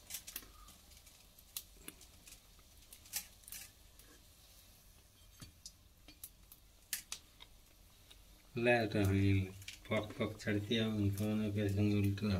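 Hot oil sizzles and crackles in a metal pan.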